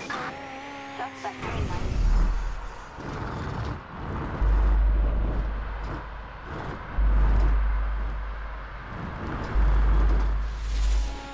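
A sports car engine roars at speed.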